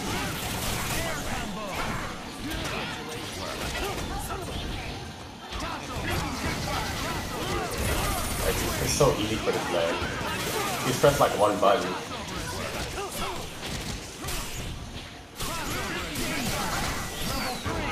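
Punches and kicks land with sharp, rapid thuds.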